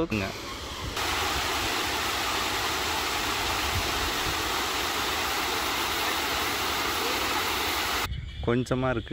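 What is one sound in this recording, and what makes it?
Water churns and splashes loudly down a flight of steps.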